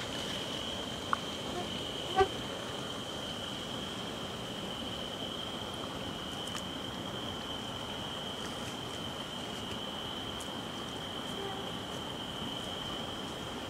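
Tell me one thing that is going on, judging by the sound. A fish splashes in a landing net in shallow water.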